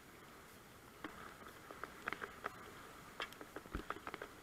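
Water drops patter and splash against a kayak.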